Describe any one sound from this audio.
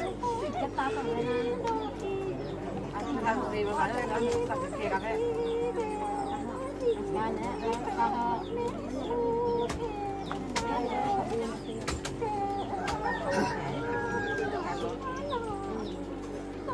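Women sing together nearby in long, wavering notes.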